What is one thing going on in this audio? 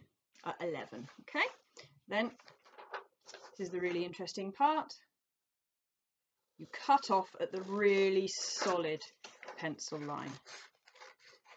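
A woman talks calmly and clearly, close to a microphone.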